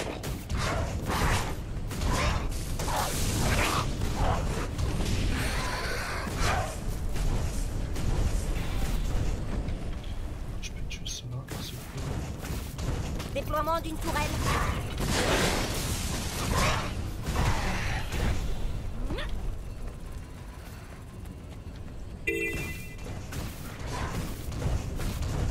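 Magic spells burst and crackle in quick blasts.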